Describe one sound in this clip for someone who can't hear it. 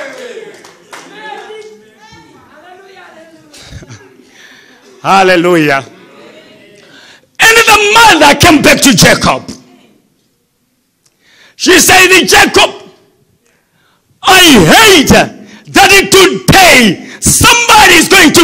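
A man preaches with animation through a microphone, in bursts with pauses, in a large echoing hall.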